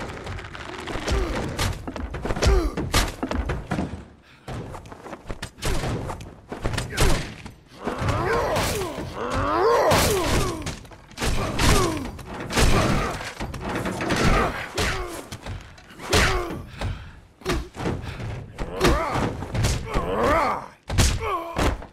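Heavy punches and thuds land in a brawl.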